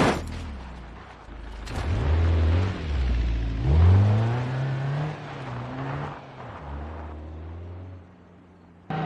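A trailer rattles and clanks over a bumpy dirt road.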